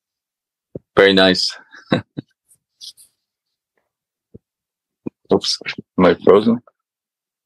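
An elderly man speaks with animation over an online call.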